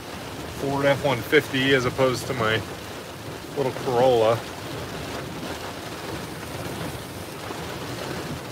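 Waves surge and crash over a flooded road in strong wind.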